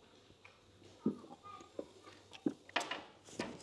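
Glasses clink and knock against a table.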